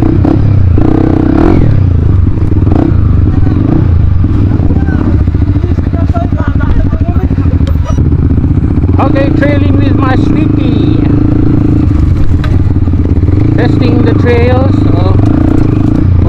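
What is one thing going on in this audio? Other dirt bike engines rev nearby.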